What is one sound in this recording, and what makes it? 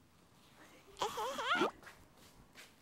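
A young woman speaks playfully up close.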